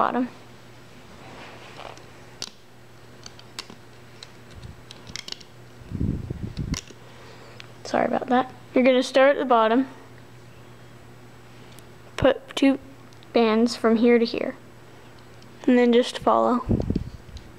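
Small plastic pegs click and tap as rubber bands are worked on a loom.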